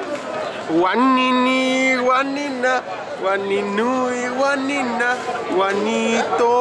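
A young man sings close by.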